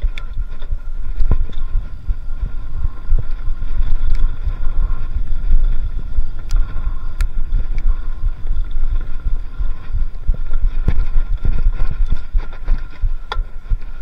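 A bicycle's parts rattle and click over bumps.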